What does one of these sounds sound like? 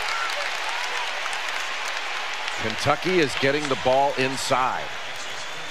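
A large crowd cheers and claps in an echoing arena.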